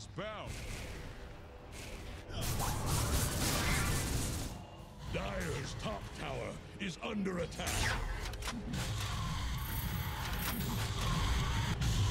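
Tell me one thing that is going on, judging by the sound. Magic spells crackle and burst in a fight.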